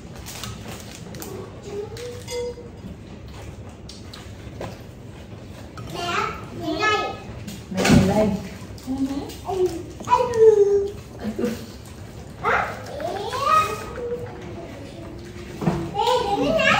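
Dishes and utensils clink softly.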